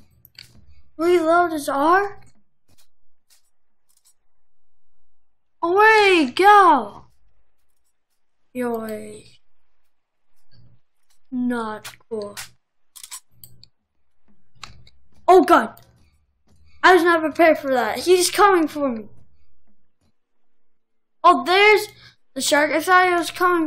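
A boy talks with animation, close to a microphone, in short bursts.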